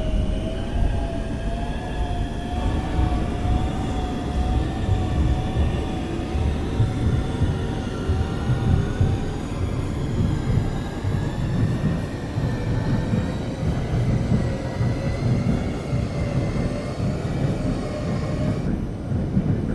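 A train's electric motor whines, its pitch slowly rising and falling.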